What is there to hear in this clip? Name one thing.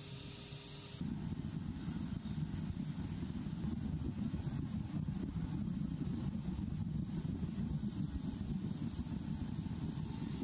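A furnace roars steadily with a low rumble.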